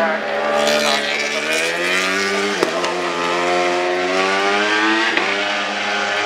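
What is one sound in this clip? A racing superbike engine screams at high revs as it accelerates out of a corner.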